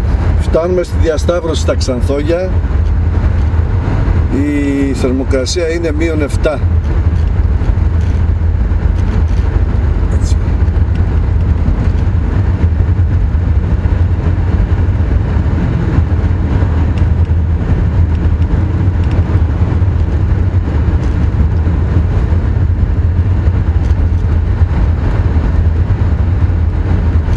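Tyres rumble on a wet road.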